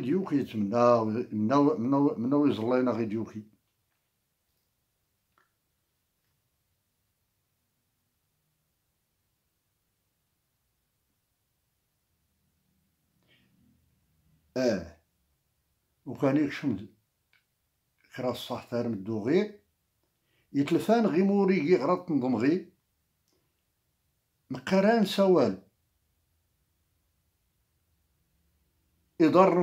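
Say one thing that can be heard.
An elderly man speaks calmly in short phrases, close to a microphone, with long pauses.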